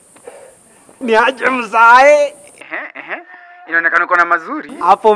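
A young man talks loudly and excitedly into a phone.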